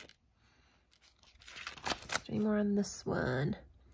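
A page of paper flips over with a rustle.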